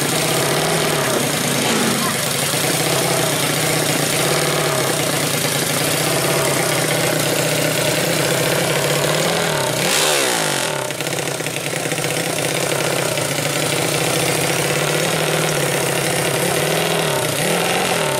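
A two-stroke motorcycle engine idles loudly and revs up and down in bursts.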